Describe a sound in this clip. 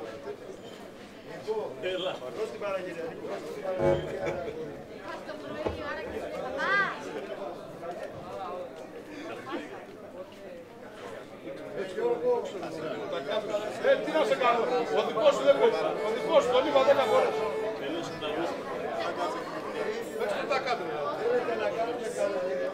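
Several men chat casually nearby, outdoors.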